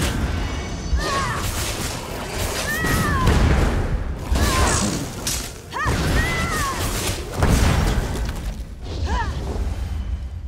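A monster screeches.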